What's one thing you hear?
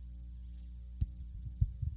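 A microphone thumps and knocks as a woman handles it.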